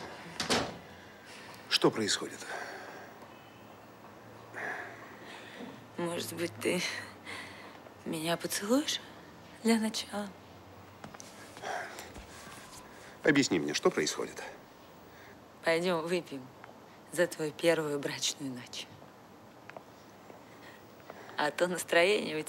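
A young woman speaks in a sultry, teasing voice, close by.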